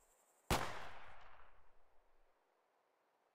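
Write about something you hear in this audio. A mortar fires with a loud boom that rumbles away.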